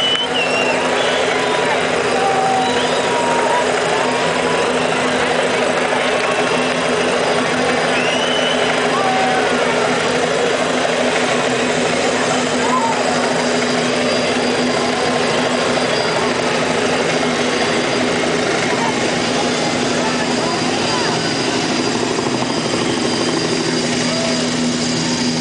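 A band plays music through loud speakers.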